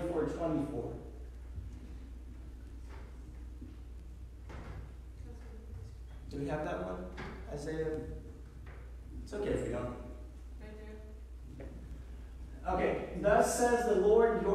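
A man speaks through a microphone in a room with some echo, with pauses between phrases.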